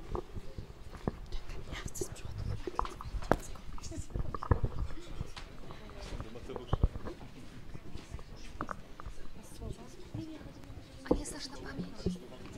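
People murmur and talk quietly nearby.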